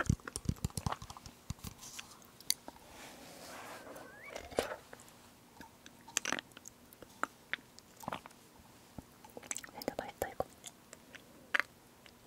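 A young woman swallows and smacks her lips softly close to a microphone.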